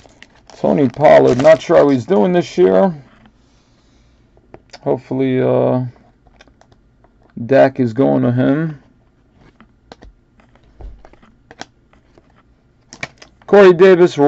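Trading cards rustle as they are shuffled by hand.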